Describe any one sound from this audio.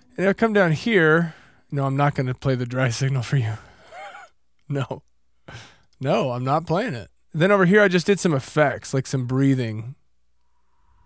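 A man speaks calmly and cheerfully into a close microphone.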